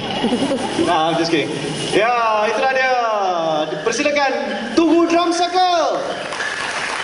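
A young man shouts with animation through a microphone in a large echoing hall.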